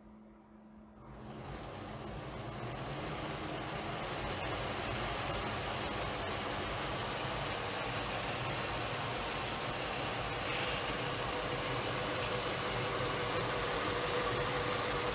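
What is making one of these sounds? A model diesel locomotive's engine sound rumbles steadily through a small speaker.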